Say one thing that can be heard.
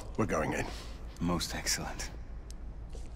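A man speaks in a low, firm voice close by.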